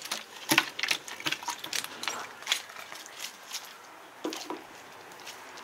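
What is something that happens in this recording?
A fish thrashes and slaps against the side of a plastic bucket.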